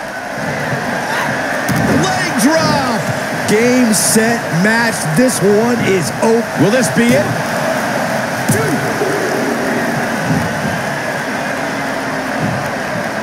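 A large crowd cheers steadily in an echoing arena.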